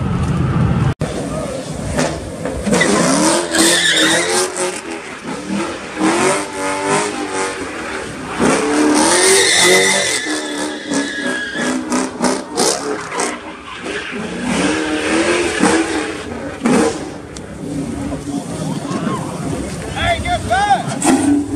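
A powerful car engine revs hard, rising and falling.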